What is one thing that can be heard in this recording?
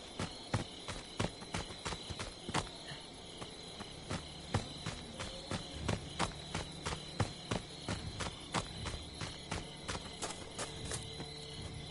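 Footsteps thud quickly on soft ground as someone runs.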